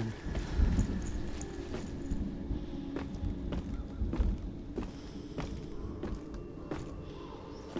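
Hands and feet knock on the rungs of a wooden ladder during a climb.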